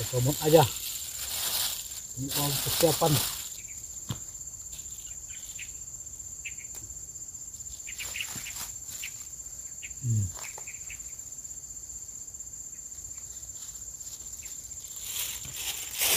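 Leaves rustle as a man picks from a vine.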